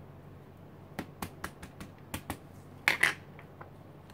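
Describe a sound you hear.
A rubber stamp taps down onto paper.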